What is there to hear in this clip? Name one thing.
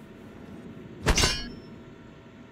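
A metal wrench strikes a metal object with a sharp clang.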